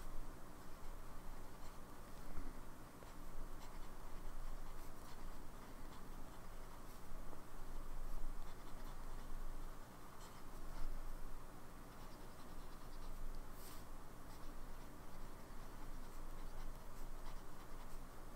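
A fountain pen scratches softly across paper.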